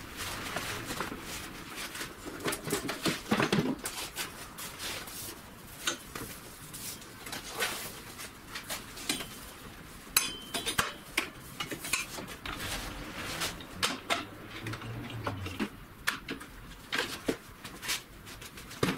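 Metal clanks and knocks as cables are handled on a metal cart.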